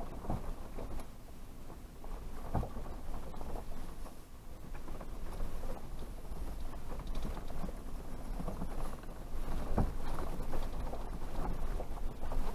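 Tyres crunch over dirt and dry leaves.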